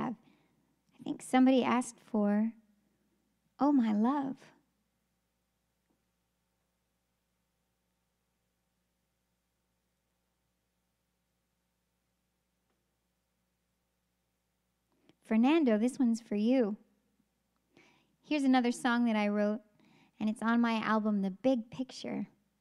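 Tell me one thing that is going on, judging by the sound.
A young woman sings into a close microphone in short melodic phrases, with pauses between them.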